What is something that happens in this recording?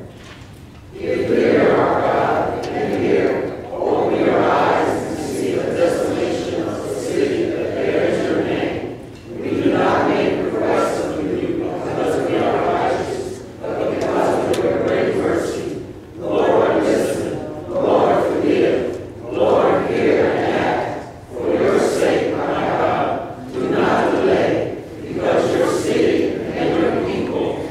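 A choir of men and women sings together, echoing in a large hall.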